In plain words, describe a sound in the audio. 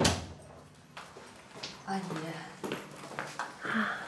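High-heeled footsteps click on a hard floor.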